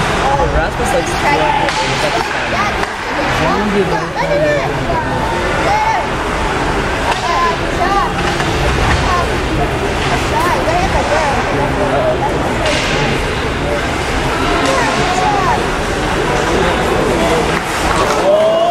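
Hockey sticks clack against pucks now and then.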